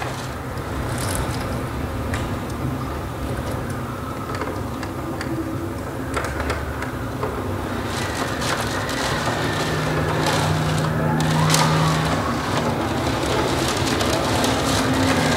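A plucked zither plays a slow, resonant melody.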